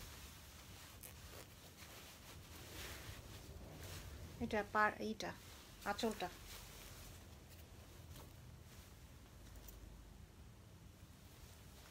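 Silky fabric rustles as it is handled.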